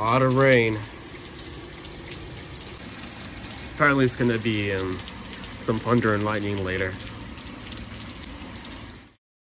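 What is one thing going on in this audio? Steady rain falls and patters on the ground outdoors.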